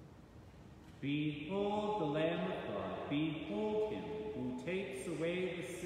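A man chants loudly in a sung voice through a microphone.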